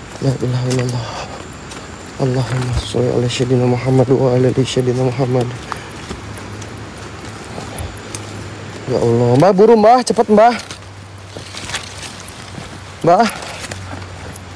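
Footsteps crunch on leaves and dirt.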